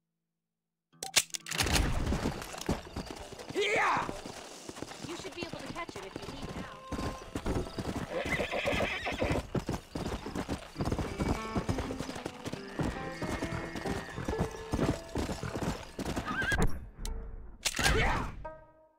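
Horse hooves gallop over rough ground.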